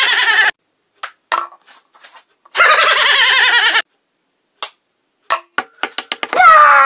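A ping-pong ball bounces with light taps.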